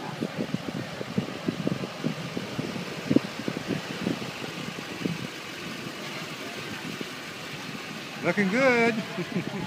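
A vehicle engine idles nearby.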